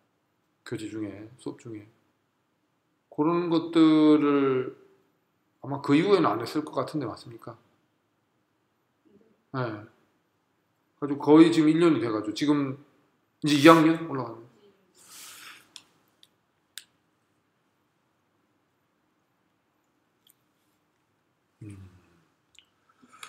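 A man speaks clearly and with emphasis, close by, in short phrases with pauses.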